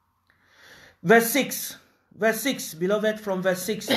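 An older man reads aloud calmly, close to a microphone.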